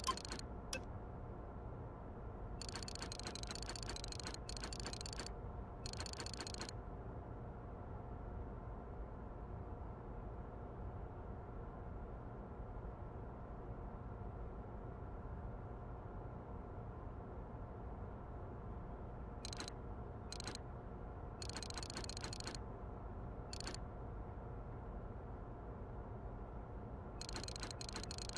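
Short interface ticks sound as menu items are switched.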